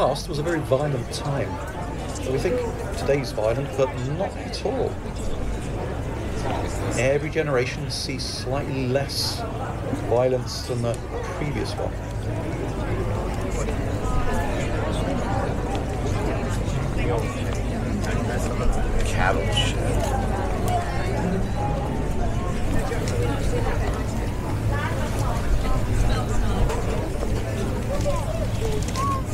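An older man talks calmly and close to a microphone.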